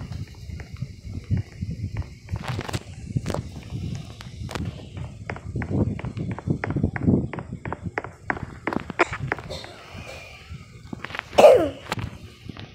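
Small train wheels clack over rail joints in a quick, even rhythm.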